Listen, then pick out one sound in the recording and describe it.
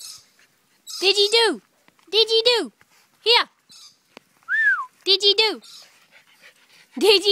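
A small dog yelps and barks in short, loud bursts.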